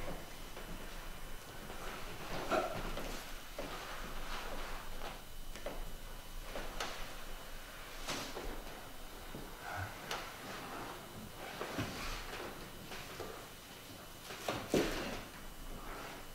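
Cloth rustles as it is handled.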